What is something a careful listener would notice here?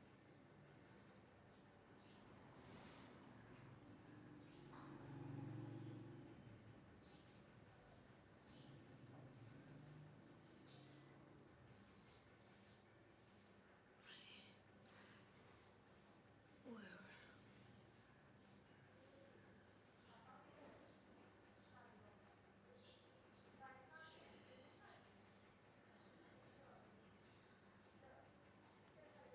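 Hands rub and press softly on skin.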